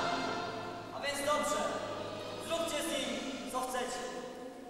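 A young man speaks loudly in a large echoing hall.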